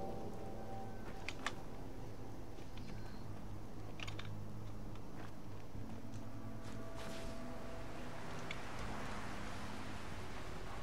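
Footsteps crunch on rubble and gravel.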